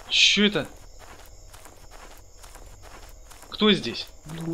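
Footsteps crunch on a forest floor.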